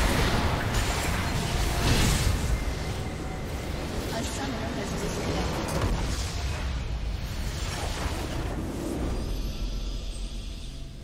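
Game battle effects crash and boom loudly.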